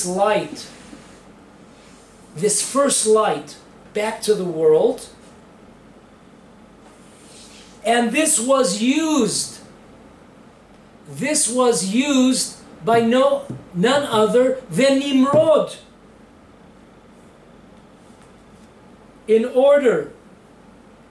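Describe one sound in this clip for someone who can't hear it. An elderly man speaks calmly and deliberately close by, with long pauses between phrases.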